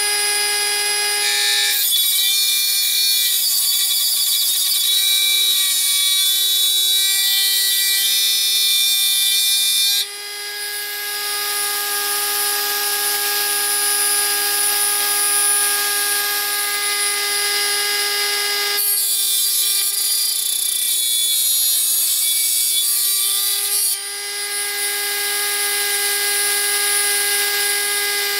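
A small rotary tool whines steadily at a high pitch.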